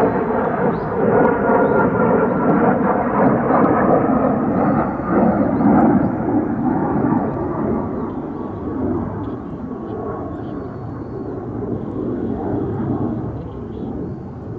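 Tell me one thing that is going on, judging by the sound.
A jet engine roars overhead and slowly fades into the distance.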